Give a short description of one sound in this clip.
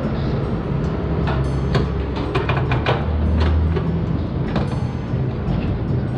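Metal latches clank on a trailer's side.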